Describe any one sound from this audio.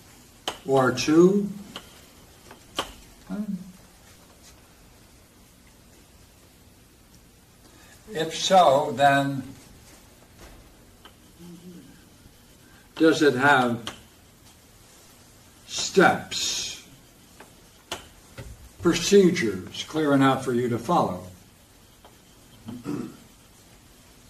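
An elderly man speaks slowly and calmly, pausing between phrases.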